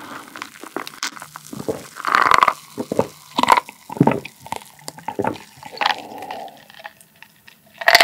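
A man gulps down a drink loudly, close to a microphone.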